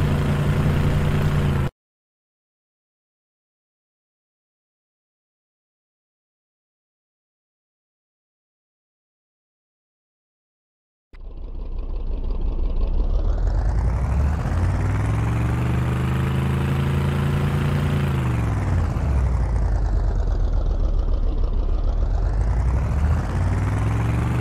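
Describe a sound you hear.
A vehicle engine roars, rising and falling in pitch.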